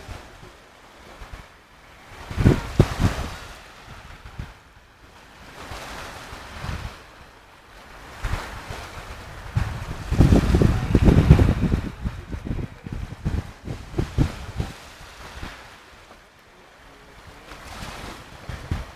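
Small waves wash and break on a pebble shore.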